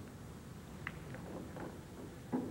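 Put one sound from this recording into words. Billiard balls knock together with a click.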